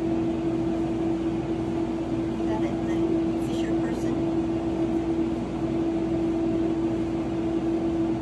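A cat paws and scratches at a soft blanket.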